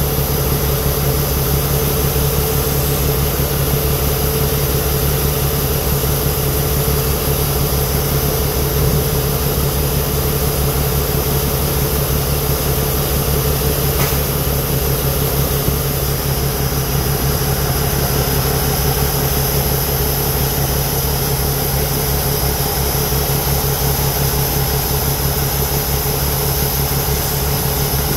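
Shelled corn pours from a combine's unloading auger into a grain trailer with a steady hiss.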